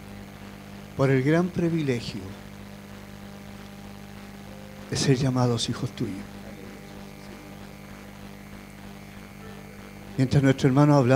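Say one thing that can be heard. A man speaks slowly in short phrases through a microphone and loudspeakers.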